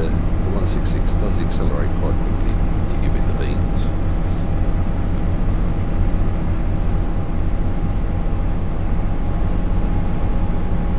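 A train engine hums steadily as the train speeds up.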